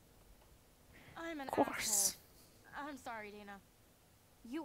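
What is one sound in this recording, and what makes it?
A second young woman speaks in an upset, tearful voice.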